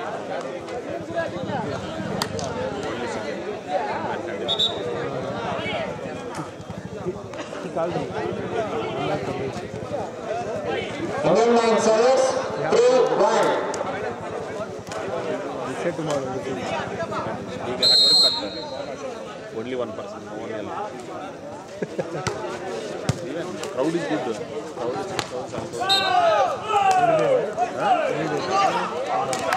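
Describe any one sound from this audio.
Young men shout on court during play.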